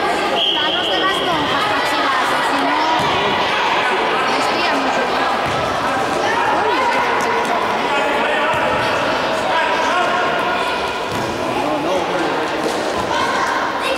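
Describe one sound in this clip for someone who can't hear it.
Children shout and call out across a large echoing hall.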